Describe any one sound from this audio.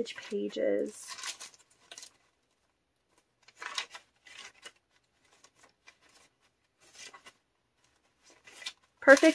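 Paper pages rustle softly as they are turned one after another.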